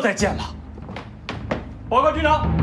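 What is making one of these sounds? Boots step on a hard floor.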